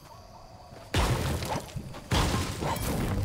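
A pickaxe strikes rock with heavy thuds.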